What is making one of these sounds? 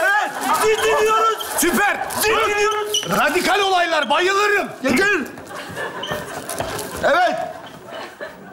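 Several young men shout and talk over each other with animation.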